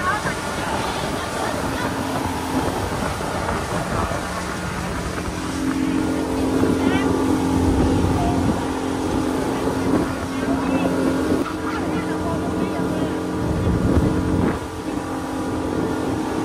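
An outboard motor drones steadily.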